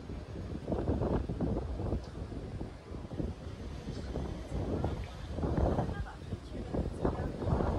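A crowd of people murmurs and chatters in the distance outdoors.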